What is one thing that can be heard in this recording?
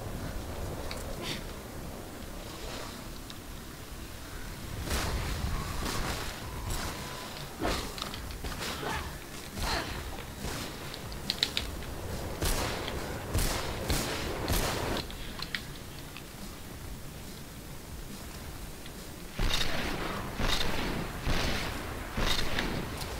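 Footsteps thud quickly along a hard floor.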